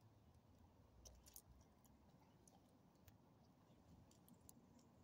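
A dog's metal tags jingle softly as it moves.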